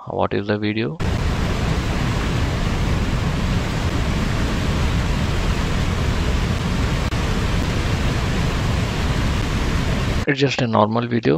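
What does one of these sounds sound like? Water rushes loudly down a waterfall.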